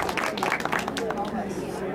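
A woman claps her hands a few times.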